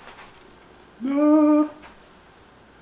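A ukulele string is plucked once and rings briefly.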